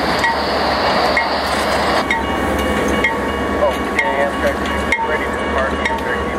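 A diesel locomotive rumbles loudly past at close range.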